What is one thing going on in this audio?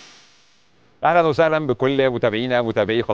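A man speaks calmly and clearly into a microphone.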